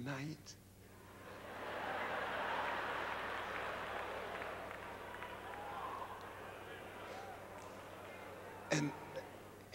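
An audience laughs and murmurs.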